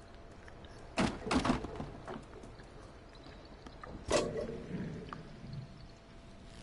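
A metal bucket clanks and rattles on a chain.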